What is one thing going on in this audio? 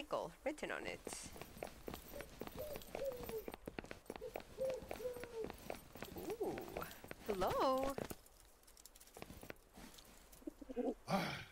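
A young person talks animatedly into a close microphone.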